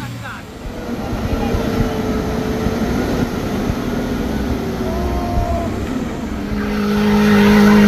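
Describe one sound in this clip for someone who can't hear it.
A truck engine roars and labours.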